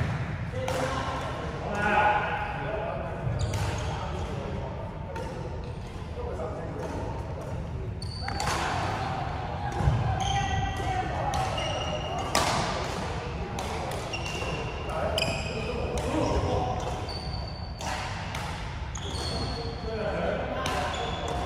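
Badminton rackets strike a shuttlecock again and again in a large echoing hall.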